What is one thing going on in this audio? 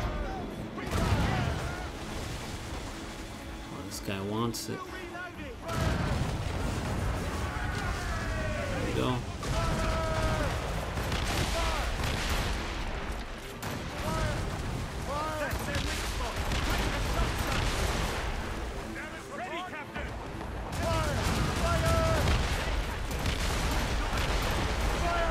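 Cannons boom repeatedly in heavy bursts.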